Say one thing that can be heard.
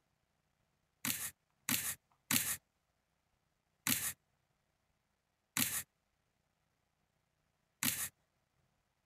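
Short swishing card sounds play as playing cards are laid down, one after another.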